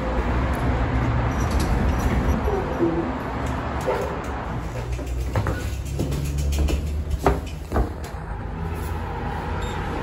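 A lift button clicks when pressed.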